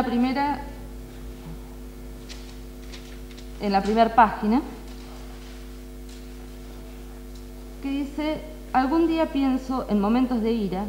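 A woman sings into a microphone with a wavering voice.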